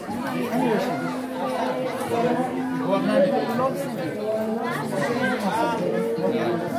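Many people talk at once, with children's voices among them, in a large echoing hall.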